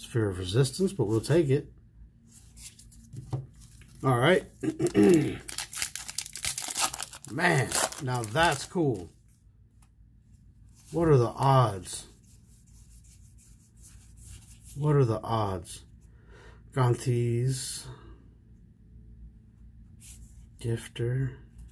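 Playing cards flick and slide against each other.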